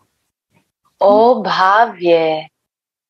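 A young woman sings over an online call.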